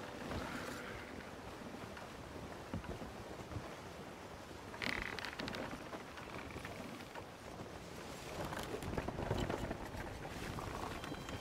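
Wind blows steadily at sea.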